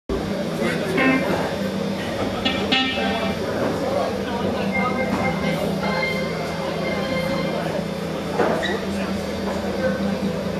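A keyboard plays.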